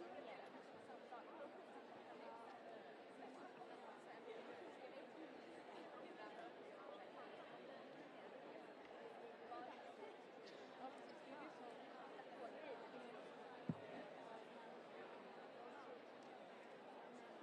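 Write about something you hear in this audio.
A young man talks quietly nearby.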